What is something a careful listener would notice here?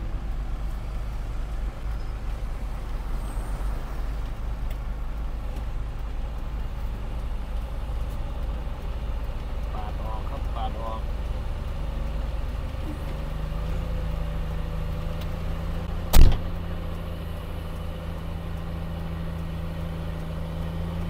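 A grader's diesel engine rumbles steadily close by.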